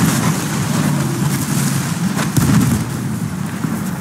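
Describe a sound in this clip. A brick wall crashes down as a tank smashes through it.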